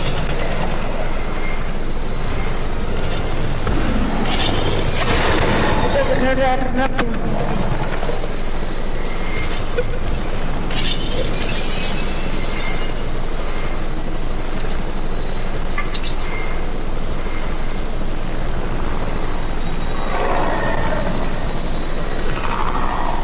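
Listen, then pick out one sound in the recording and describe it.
A helicopter's rotor whirs steadily overhead.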